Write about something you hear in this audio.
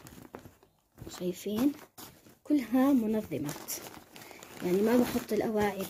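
Fabric rustles as a bag is packed by hand.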